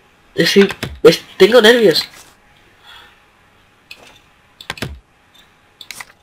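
A rubber stamp thumps down on paper twice.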